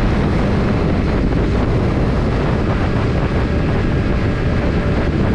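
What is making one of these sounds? A motorcycle engine hums steadily while riding along.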